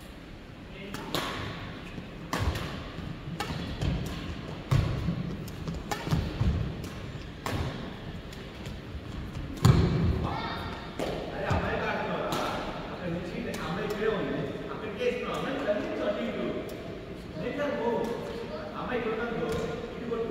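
Rackets smack a shuttlecock back and forth in a large echoing hall.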